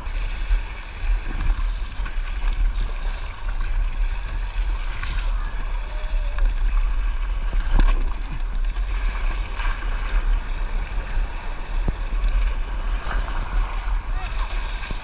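A paddle splashes and dips into water in steady strokes.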